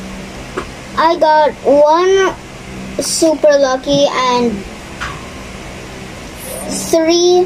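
A young girl talks with animation close to the microphone.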